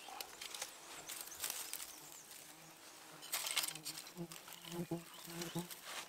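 Dry grass stalks rustle and crackle in a man's hands.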